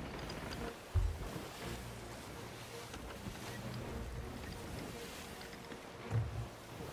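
Wooden ship timbers creak and thump.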